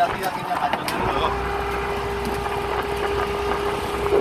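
A motor starts and hums steadily.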